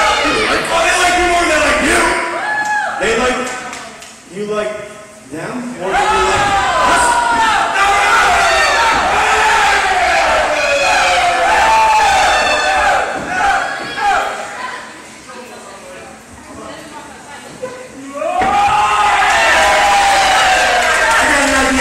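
A man talks loudly and with animation in an echoing hall.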